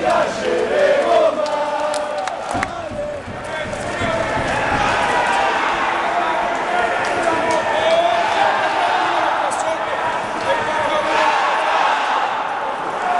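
A crowd in a large echoing arena chants and cheers loudly.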